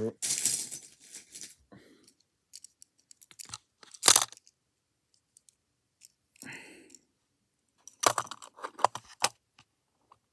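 Plastic toys clatter and rattle in a storage bin.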